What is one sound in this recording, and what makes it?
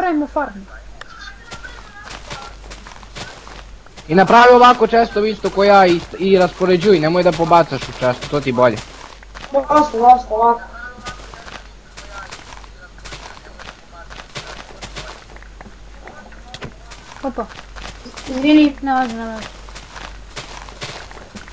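Dirt crunches again and again as it is dug out.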